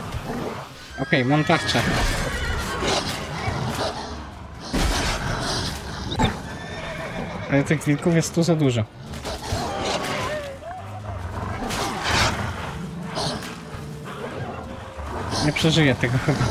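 Wolves snarl and yelp during a fight.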